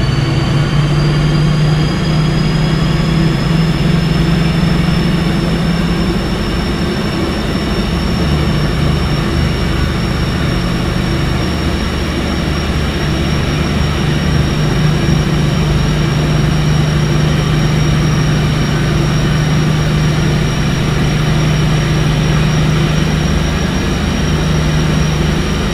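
An electric train engine hums steadily with a rising whine.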